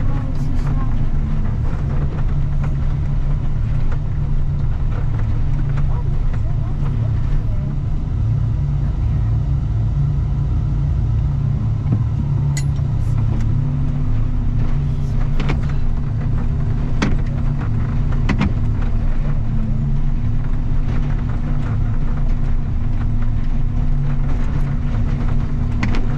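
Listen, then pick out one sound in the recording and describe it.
A plow blade scrapes through snow and gravel.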